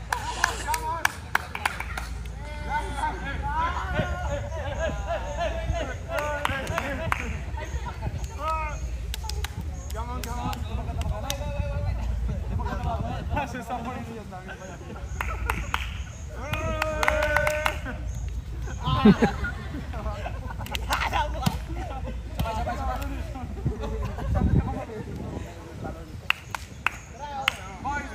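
Young men shout and cheer with animation outdoors.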